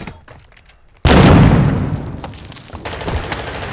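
A heavy explosion booms and rumbles away.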